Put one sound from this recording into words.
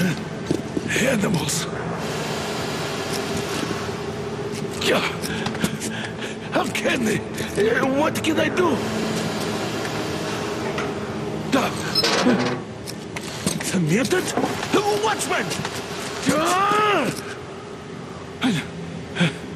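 A man in a game shouts angrily through speakers.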